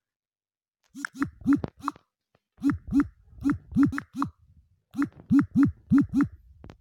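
Keyboard taps click rapidly on a phone.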